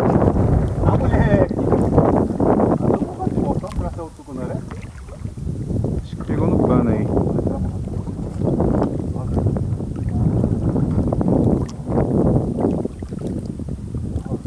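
Water laps gently against the side of a small boat.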